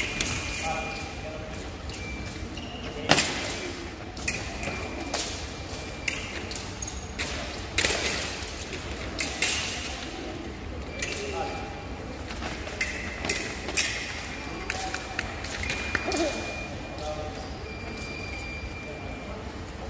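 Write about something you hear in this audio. A scoring machine beeps.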